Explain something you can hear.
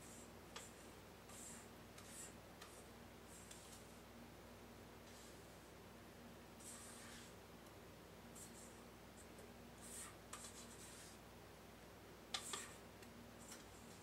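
A whisk scrapes and clinks against a metal bowl.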